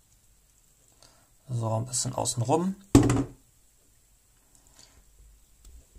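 Small plastic parts click and tap.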